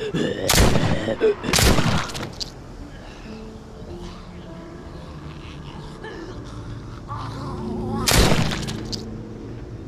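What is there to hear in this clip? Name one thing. A revolver fires loud gunshots.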